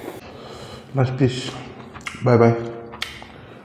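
A man hums with satisfaction while eating.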